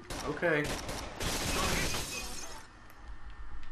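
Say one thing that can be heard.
Glass shatters and tinkles.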